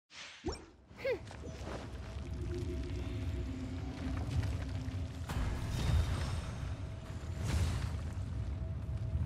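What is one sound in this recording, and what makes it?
A deep rumbling roar rolls on and swells.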